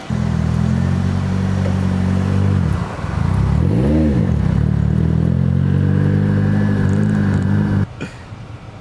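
A car engine roars and revs loudly nearby.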